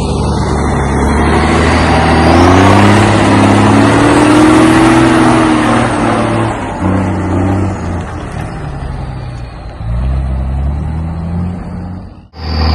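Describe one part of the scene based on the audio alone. A truck's engine roars loudly close by, revving as it climbs a dirt mound.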